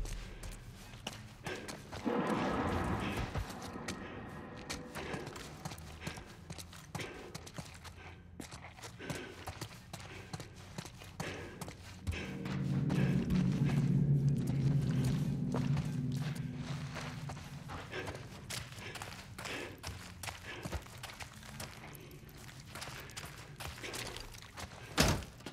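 Footsteps crunch slowly over debris on a hard floor.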